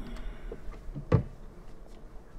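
A cabinet door bangs shut.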